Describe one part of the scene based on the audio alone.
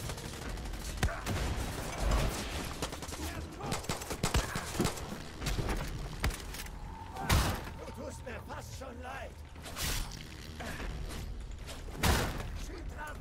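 A pistol fires loud shots.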